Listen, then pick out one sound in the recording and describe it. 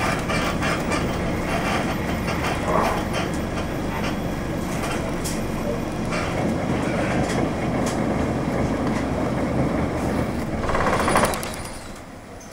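A bus engine rumbles close by, then fades away.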